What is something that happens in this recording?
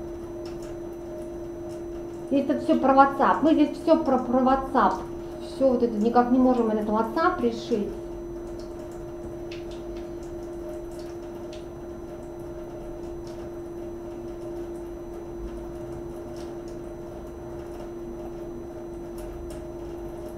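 A computer hums steadily.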